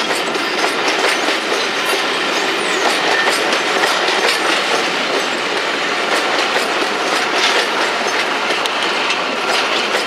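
Wheels clatter rhythmically over rail joints.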